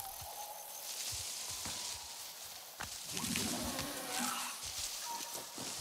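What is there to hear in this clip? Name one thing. Leaves rustle and swish as someone pushes through dense plants.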